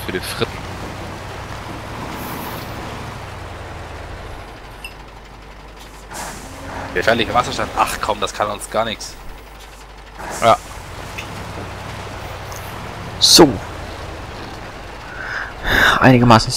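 A truck engine rumbles low and steady.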